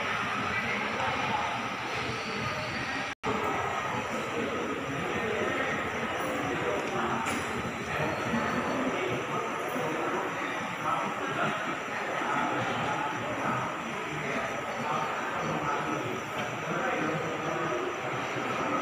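A crowd of men and women murmur and chat in a large echoing hall.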